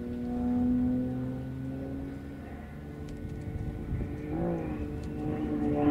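A small model plane's engine buzzes overhead, its pitch rising and falling as it turns.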